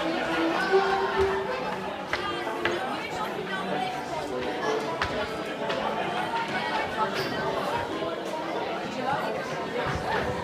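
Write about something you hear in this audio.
Shoes shuffle and tap on a wooden floor.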